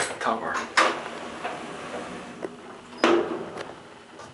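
Sliding elevator doors slide shut with a thump.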